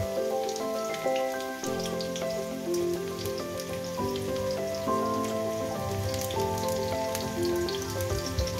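Metal tongs clink against a frying pan.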